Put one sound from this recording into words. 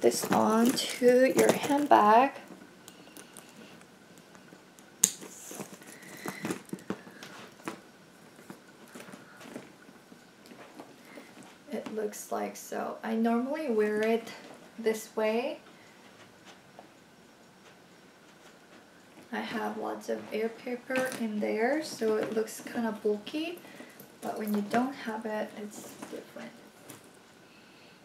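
A young woman talks calmly and close by, in short bursts with pauses.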